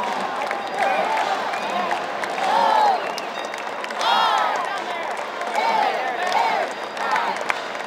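Spectators clap their hands.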